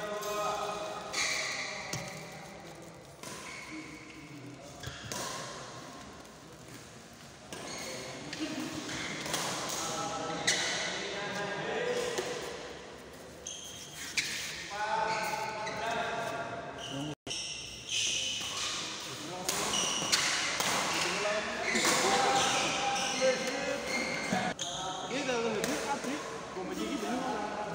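Young men talk and call out nearby in an echoing hall.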